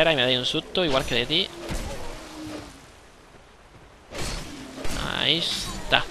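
A sword swings and strikes a creature.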